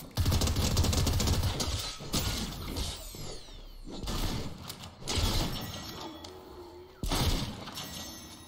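A pickaxe whooshes and thuds in hard, repeated swings.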